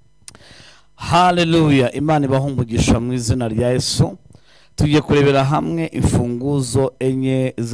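A man speaks with feeling into a microphone, heard through loudspeakers.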